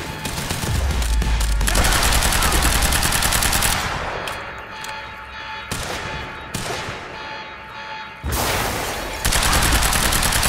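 Rapid gunfire rattles in an echoing space.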